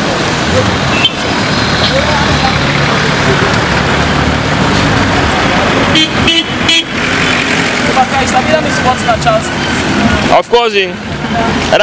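Busy street traffic and crowd noise fill the air outdoors.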